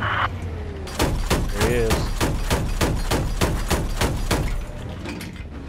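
An automatic cannon fires a rapid burst of shots.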